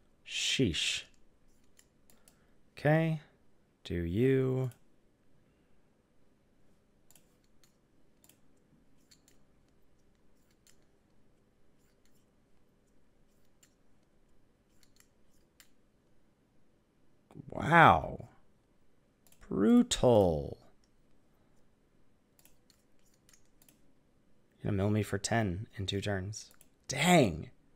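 A man speaks briefly into a headset microphone, in short bursts.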